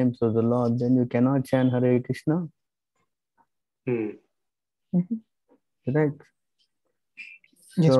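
A man reads aloud in a slow, sing-song voice over an online call, pausing between phrases.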